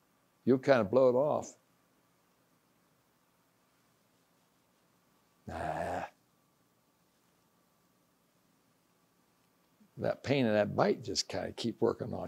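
An elderly man speaks calmly, pausing between phrases.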